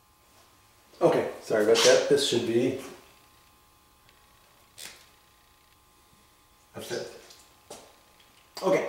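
A man speaks calmly nearby, explaining.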